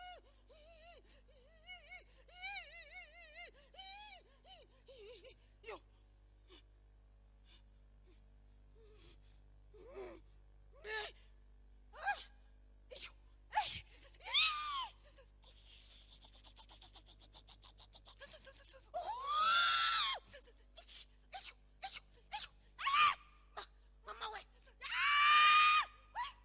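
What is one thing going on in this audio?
A man preaches loudly into a microphone with great animation.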